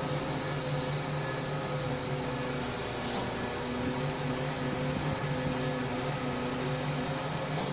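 A heavy engine idles nearby with a steady low hum.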